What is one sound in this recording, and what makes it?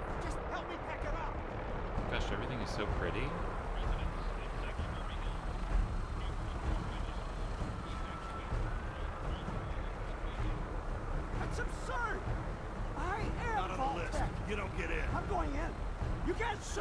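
Footsteps run along a dirt path.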